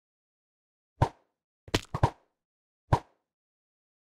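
A bow twangs as arrows are fired.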